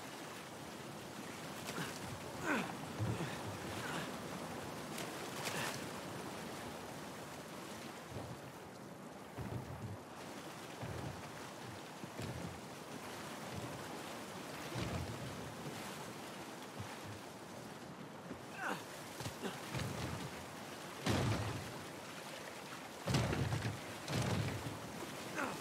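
Water flows and splashes steadily.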